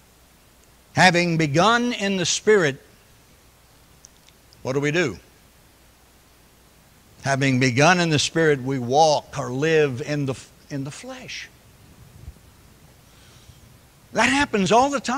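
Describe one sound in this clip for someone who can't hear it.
An elderly man preaches with animation through a microphone.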